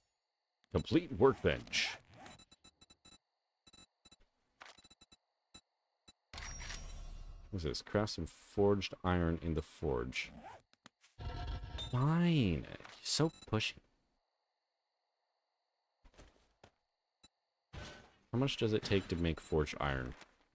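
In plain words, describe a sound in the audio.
A young man talks casually into a close microphone, pausing now and then.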